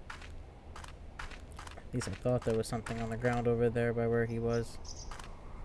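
Footsteps crunch quickly over snowy ground.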